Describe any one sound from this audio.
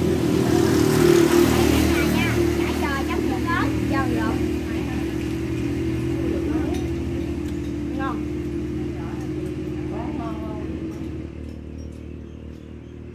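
Spoons clink against bowls.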